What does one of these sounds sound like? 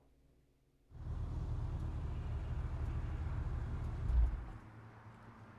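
A car engine starts and rumbles.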